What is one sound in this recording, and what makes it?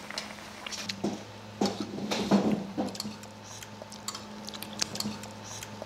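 Spoons clink and scrape against bowls.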